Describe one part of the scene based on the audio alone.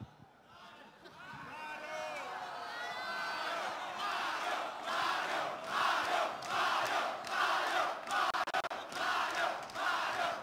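A large crowd chants in a steady rhythm.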